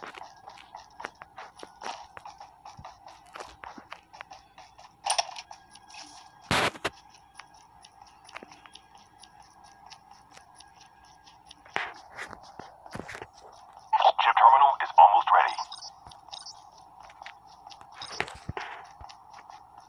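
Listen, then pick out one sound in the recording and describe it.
Footsteps run quickly and steadily over wooden floor and then rough ground.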